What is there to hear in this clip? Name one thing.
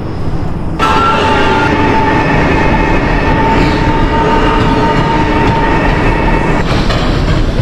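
An electric train motor whines with a steady high tone.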